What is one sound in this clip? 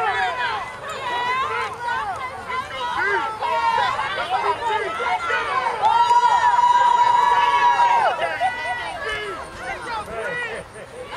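A crowd of adult spectators shouts and cheers outdoors nearby.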